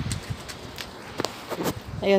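A small child's footsteps patter on a hard floor.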